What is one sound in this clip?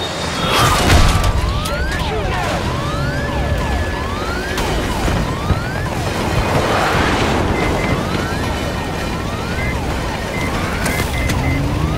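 Explosions boom and crackle with fire close by.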